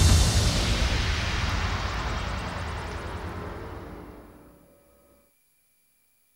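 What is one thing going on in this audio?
Electronic dance music plays loudly and slowly fades out.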